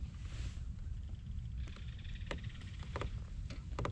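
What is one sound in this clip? A fishing reel ticks rapidly as line is wound in.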